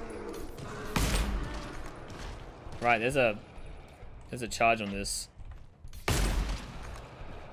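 Gunshots boom with a short echo.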